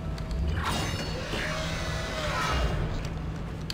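A heavy metal door slides open with a mechanical whoosh.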